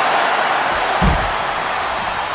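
A heavy body thuds onto a floor.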